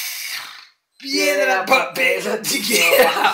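A man laughs loudly close by.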